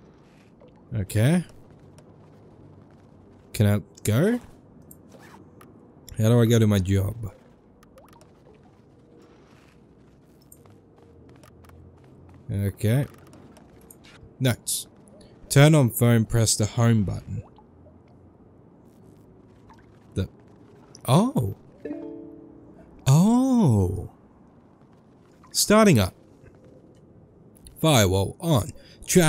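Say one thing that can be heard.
A young man talks in bursts into a close microphone, with animation.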